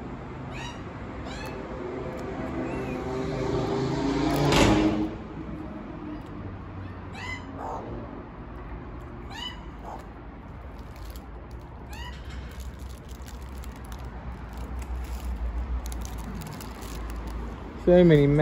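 Magpies give short, high chirping calls close by.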